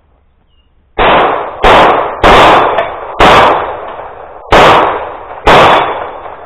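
Rapid gunshots ring out outdoors, echoing across open ground.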